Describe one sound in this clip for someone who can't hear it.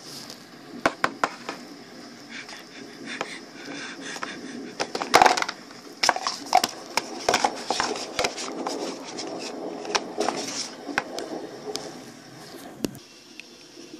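A cardboard box taps and knocks as it is handled up close.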